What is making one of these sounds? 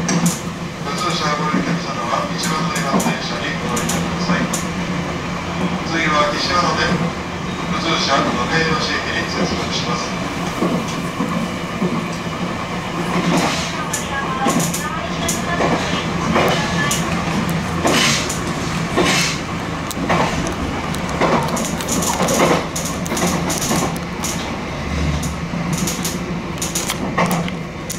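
Train wheels clack over rail joints and points.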